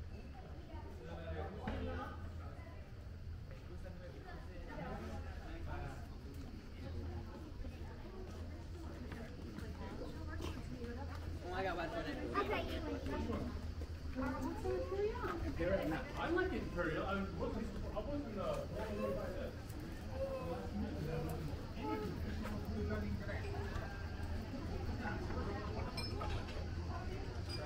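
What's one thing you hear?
Several men and women talk nearby.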